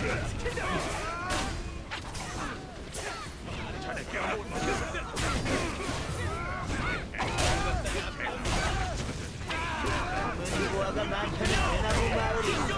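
Explosive bursts of magic crackle and boom.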